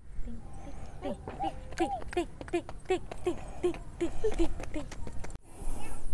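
A toddler's squeaky shoes squeak with each quick step.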